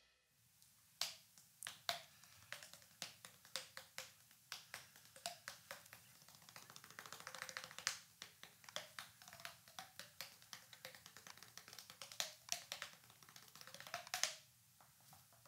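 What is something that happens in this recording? A man taps his cheeks with his fingers, making quick hollow pops.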